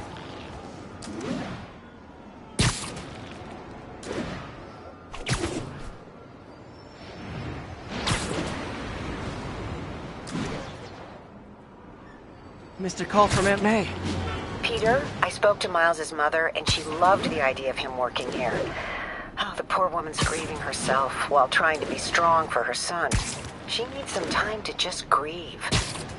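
Web lines shoot out with sharp, snapping thwips.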